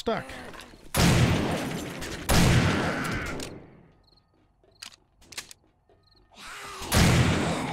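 A shotgun fires loud blasts.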